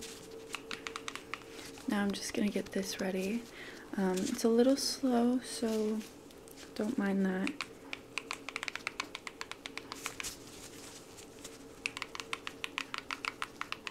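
Rubber gloves tap and crinkle close to a microphone in quick clicks.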